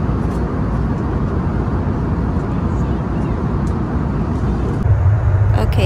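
Airplane engines roar steadily inside a cabin.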